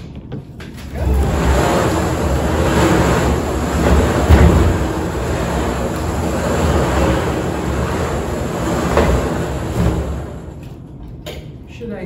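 Balls rattle and tumble inside a turning drum.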